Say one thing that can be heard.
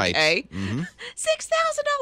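A woman laughs into a close microphone.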